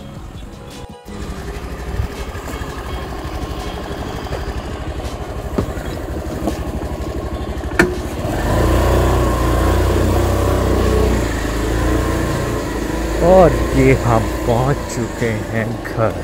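A scooter engine runs with a steady low putter.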